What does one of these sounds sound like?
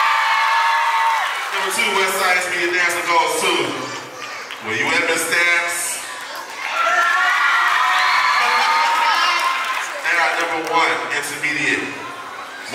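A large crowd of girls and adults chatters and shouts in a large echoing hall.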